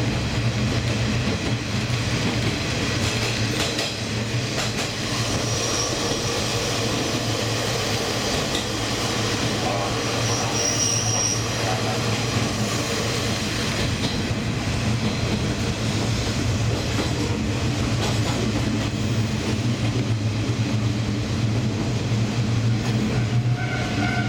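A train rumbles steadily along the rails, heard from on board.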